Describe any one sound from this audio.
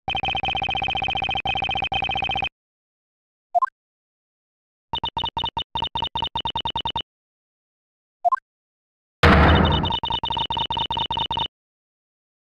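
Rapid electronic beeps tick along in quick bursts.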